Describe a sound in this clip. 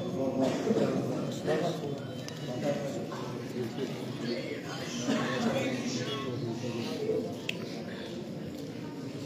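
A man recites loudly through a microphone and loudspeakers in an echoing hall.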